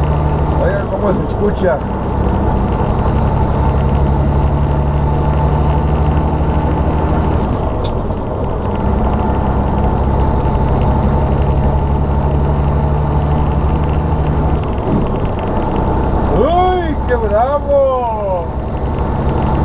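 Wind rushes past the cab.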